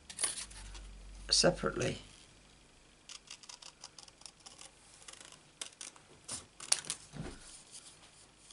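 Paper crinkles and rustles in someone's hands.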